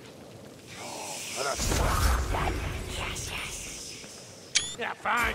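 A deep magical rumble swells and slowly fades.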